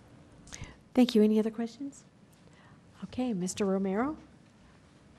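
A woman speaks briefly through a microphone in a large room.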